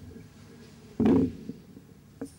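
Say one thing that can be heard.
A microphone thumps as it is handled.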